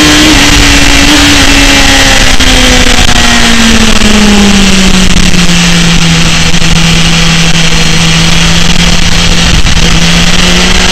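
A motorcycle engine roars loudly at high revs, its pitch dropping then holding steady.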